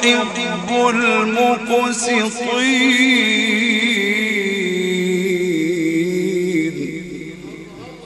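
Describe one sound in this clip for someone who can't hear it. A man chants in a long, melodious voice through a microphone in an echoing hall.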